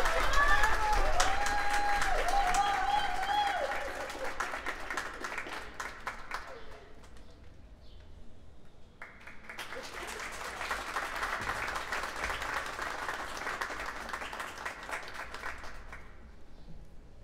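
An audience claps and applauds outdoors.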